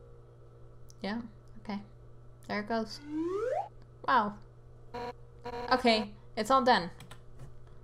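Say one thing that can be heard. Short bleeping sound effects play in quick bursts, one with a rising sweep.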